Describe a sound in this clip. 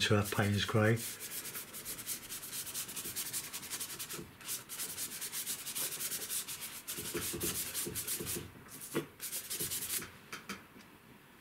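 A stiff brush scrubs and rasps across paper.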